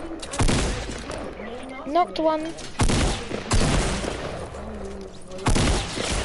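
Gunshots bang loudly, a few at a time.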